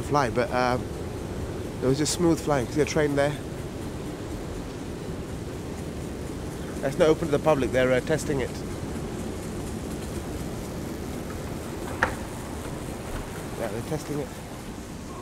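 A moving walkway hums steadily.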